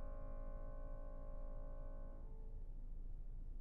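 A piano chord rings out and slowly fades away.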